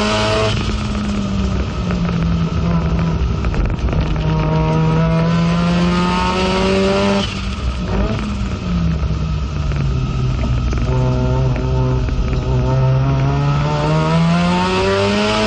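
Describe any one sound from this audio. The car's body and fittings rattle and vibrate over the track.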